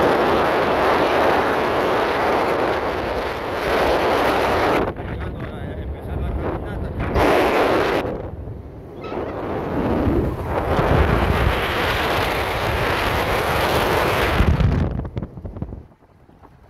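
Wind rushes loudly past an open vehicle as it drives.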